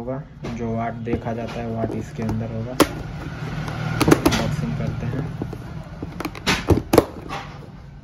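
Scissors snip through plastic strapping with sharp clicks.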